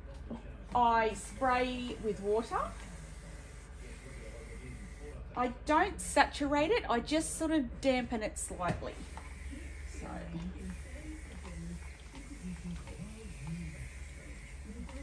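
A woman talks calmly, close by.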